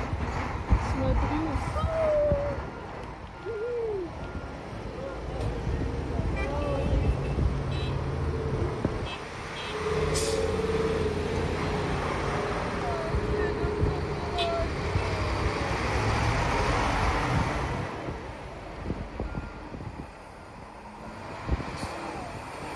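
Heavy trucks rumble past close by, outdoors.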